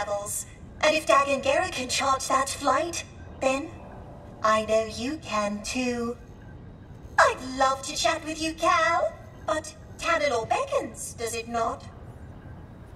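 A robot speaks in a flat, synthetic voice.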